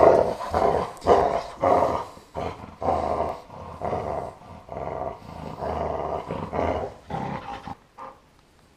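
A dog growls and snarls playfully up close.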